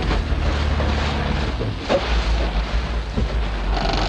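A motorboat engine churns across the water.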